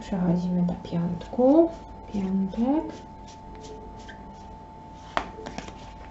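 Playing cards riffle and flick as a deck is shuffled by hand.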